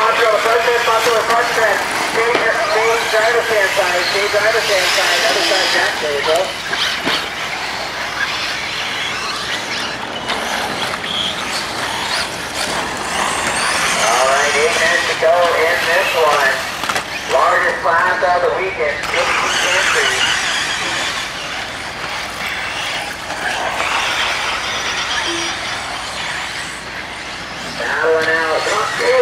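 Small electric model cars whine loudly as they race, their pitch rising and falling quickly.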